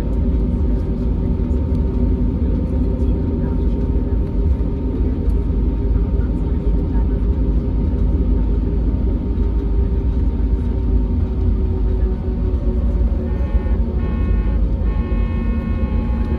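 The engines of an Airbus A320neo hum and rumble inside the cabin as the airliner taxis.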